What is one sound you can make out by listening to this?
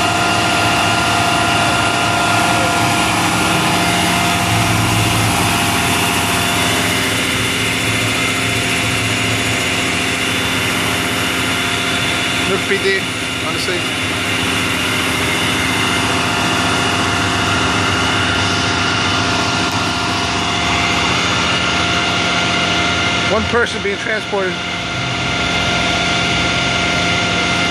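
A large vehicle engine idles nearby with a steady hum.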